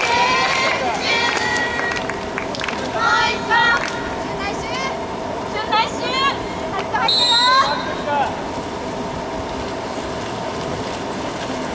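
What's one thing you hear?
Water splashes steadily as swimmers churn through a pool.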